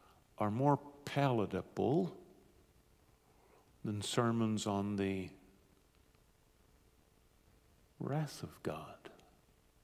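A middle-aged man speaks calmly through a microphone in a large room, with pauses between phrases.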